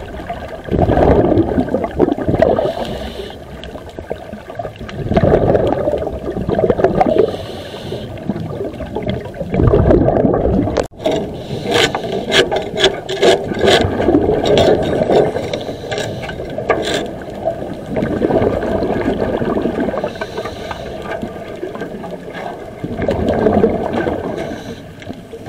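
A scuba diver breathes underwater through a regulator, with bubbles gurgling out in regular bursts.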